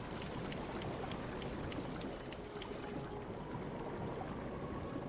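Water laps and ripples steadily.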